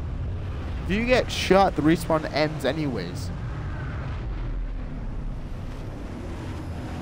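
Wind rushes steadily past a diving figure.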